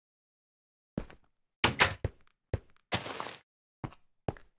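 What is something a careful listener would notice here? A wooden door clacks open.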